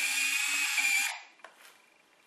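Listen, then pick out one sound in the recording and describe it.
A small power screwdriver whirs.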